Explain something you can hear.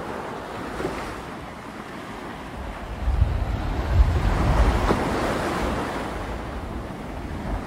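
Small waves wash onto the shore and hiss as they draw back.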